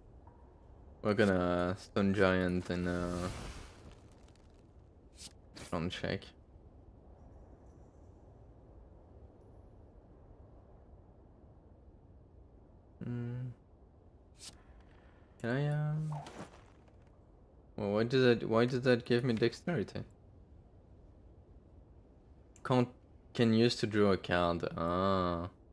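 Short game sound effects chime and whoosh as cards are played.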